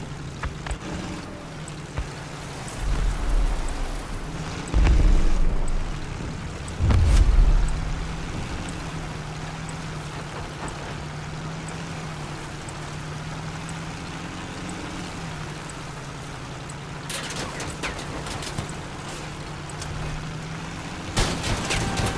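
An armoured vehicle's engine rumbles steadily as it drives.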